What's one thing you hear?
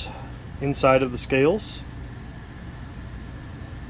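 A folding knife blade clicks as it opens.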